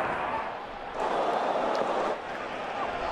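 A large crowd cheers briefly.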